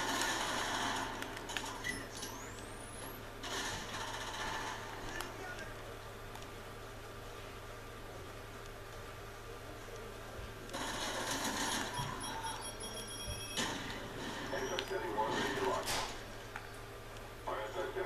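Gunfire from a video game crackles through loudspeakers in bursts.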